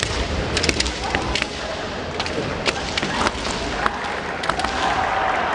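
Bamboo swords clack sharply against each other in a large echoing hall.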